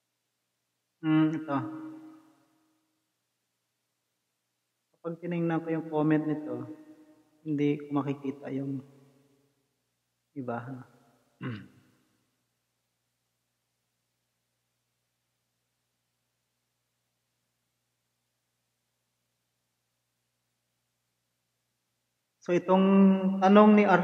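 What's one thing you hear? A man speaks calmly into a close microphone, in short bursts with long pauses.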